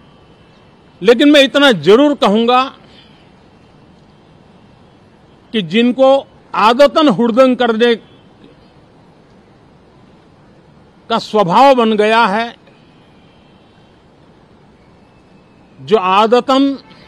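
An elderly man speaks calmly into a microphone in short phrases with pauses.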